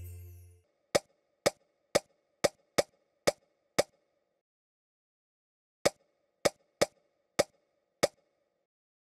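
Short, bright pops sound in quick succession as food pieces stack up.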